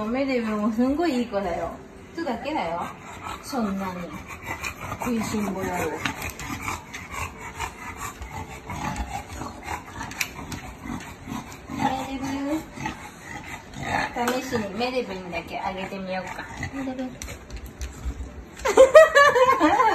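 An English bulldog whines and grumbles.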